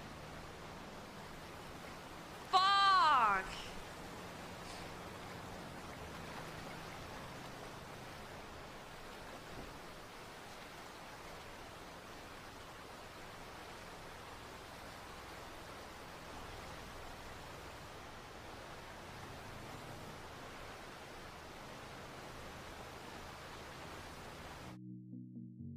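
Water flows steadily in a stream.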